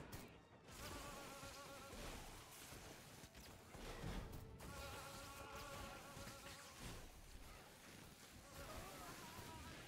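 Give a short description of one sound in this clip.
A young woman talks with animation through a microphone.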